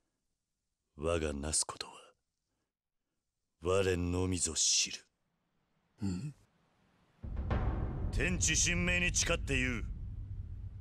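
A man speaks in a low, grave voice.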